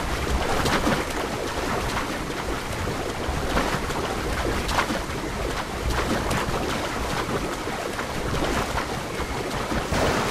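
Water splashes steadily as a person swims.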